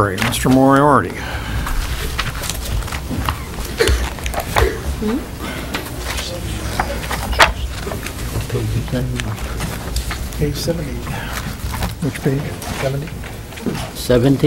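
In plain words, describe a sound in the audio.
People murmur and talk quietly in the background.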